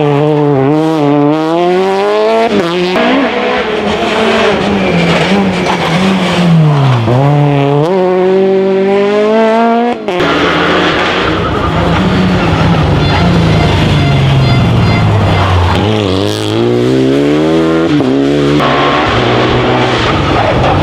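A rally car engine revs hard and roars past close by.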